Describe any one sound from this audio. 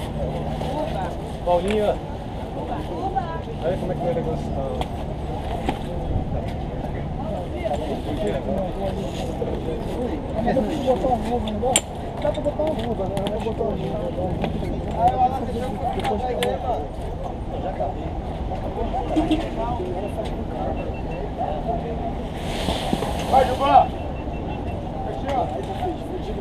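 Men talk casually close by outdoors.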